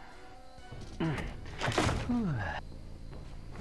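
A wooden barrier smashes apart with a loud crack.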